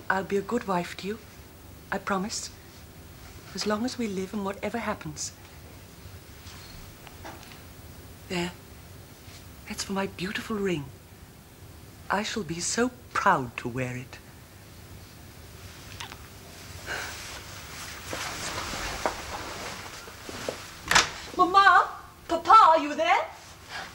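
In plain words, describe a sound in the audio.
A woman speaks softly and warmly, close by.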